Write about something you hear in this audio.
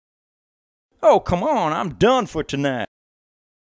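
A man answers in an excited, high voice.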